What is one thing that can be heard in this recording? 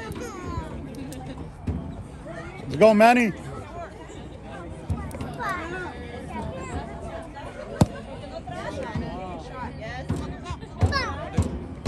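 Players shout and call out across an open field.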